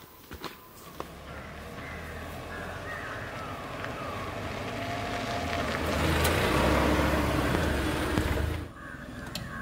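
A car engine hums as a car approaches and slows to a stop.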